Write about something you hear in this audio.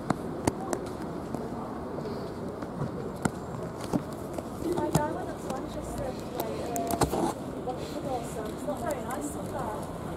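Traffic rumbles softly along a street outdoors.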